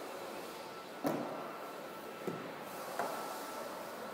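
A car door latch clicks open with a sharp thud.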